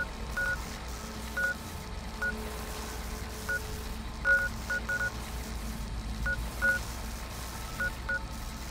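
Short electronic beeps chirp again and again.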